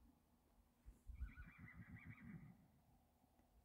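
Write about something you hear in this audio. A horse snorts and blows nearby.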